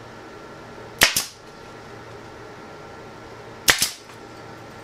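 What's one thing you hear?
A pneumatic staple gun fires with sharp bangs.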